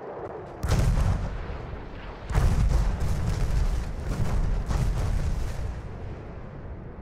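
Heavy explosions boom and rumble across the water.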